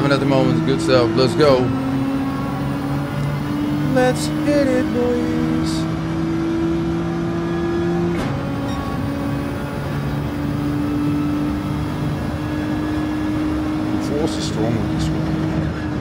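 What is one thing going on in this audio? A man talks with animation through a headset microphone.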